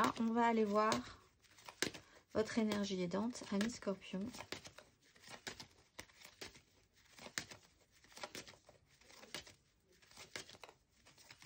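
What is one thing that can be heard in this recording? Playing cards riffle and slap together as they are shuffled by hand.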